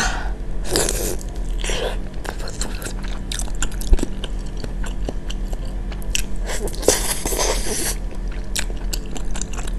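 A young woman chews food wetly close to a microphone.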